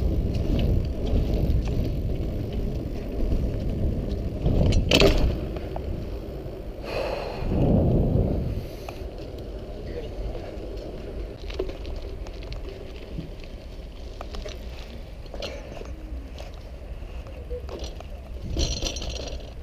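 Wind rumbles across a close microphone outdoors.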